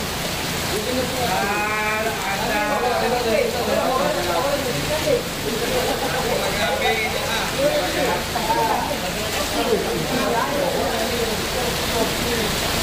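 Rain patters steadily on the ground.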